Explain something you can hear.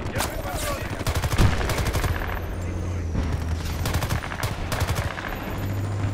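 A rifle fires in bursts.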